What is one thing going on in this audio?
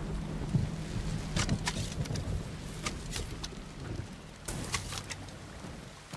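An arrow whooshes from a bow.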